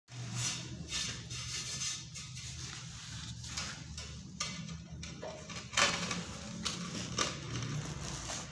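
A ceramic tile scrapes and knocks against a tiled floor.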